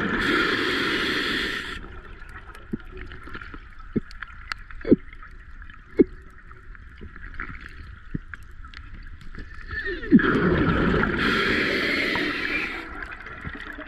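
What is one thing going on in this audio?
A diver's breathing bubbles out in loud gurgling bursts underwater.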